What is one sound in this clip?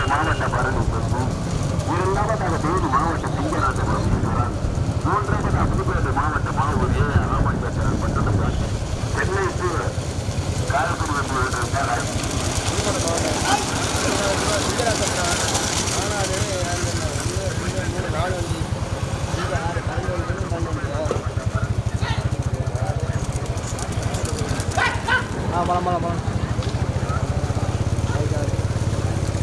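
Men shout to urge on the racing bulls.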